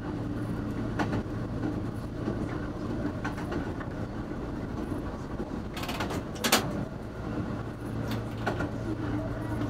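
Train wheels click over the rail joints.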